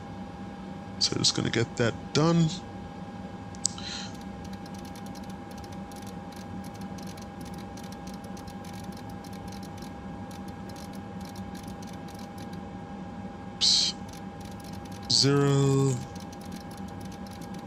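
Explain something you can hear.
An aircraft engine hums steadily at idle.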